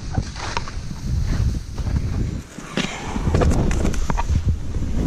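Ski edges scrape and thump over snow.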